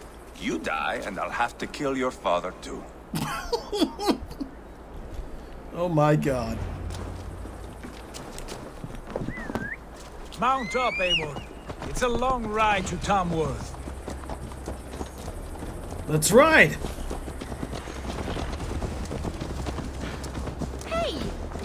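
A young man talks casually close to a headset microphone.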